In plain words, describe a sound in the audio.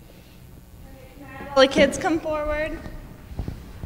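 A woman's voice rings out briefly in a large echoing hall.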